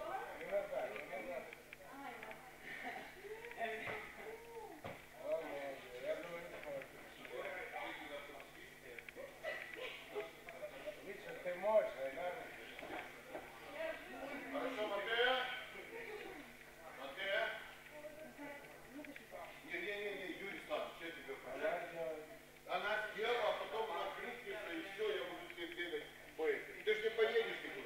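Young people talk and chatter throughout, in a room with some echo.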